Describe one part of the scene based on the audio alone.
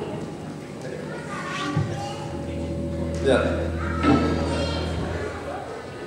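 An electric guitar plays a few notes on a stage.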